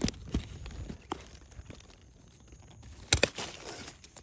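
Pruning shears snip through a plant stem with a sharp click.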